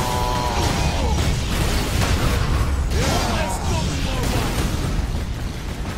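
Heavy combat noise booms and crashes.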